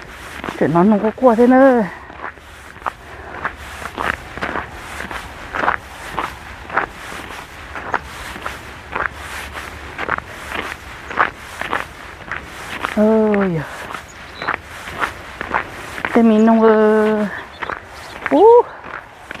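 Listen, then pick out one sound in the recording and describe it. A woman speaks close by, muffled, in short bursts.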